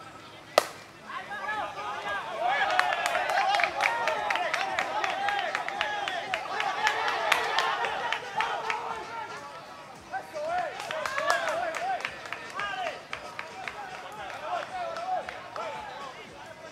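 A group of young men shout and cheer excitedly outdoors.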